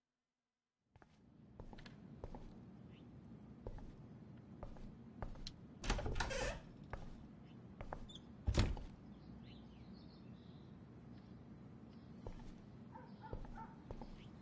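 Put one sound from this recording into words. Footsteps thud slowly on a wooden floor indoors.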